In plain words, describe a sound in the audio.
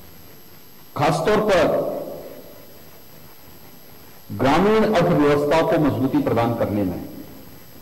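A man speaks firmly into a microphone, heard through a loudspeaker with some echo.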